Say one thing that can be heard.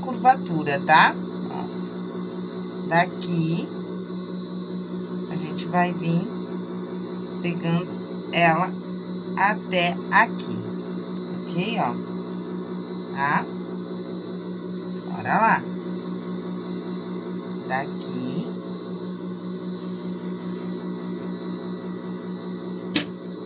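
A sewing machine motor hums steadily.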